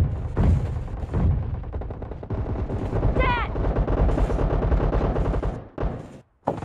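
Rapid rifle shots fire in quick bursts.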